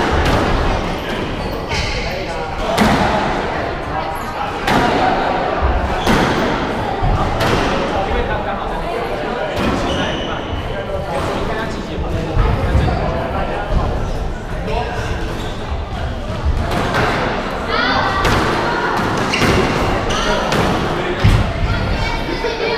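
Shoes squeak on a wooden court floor.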